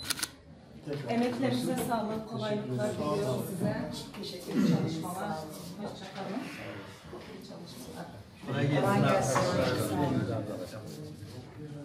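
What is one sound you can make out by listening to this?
People talk and murmur nearby.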